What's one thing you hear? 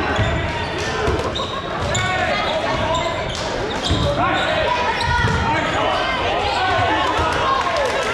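A crowd of young people chatters and shouts in a large echoing hall.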